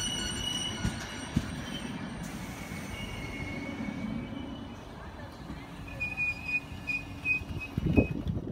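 A train rolls slowly past with a low rumble.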